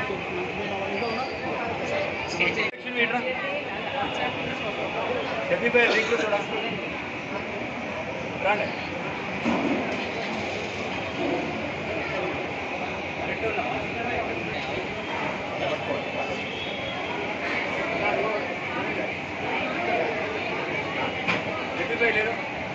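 A crowd of adults and children murmurs and chatters nearby.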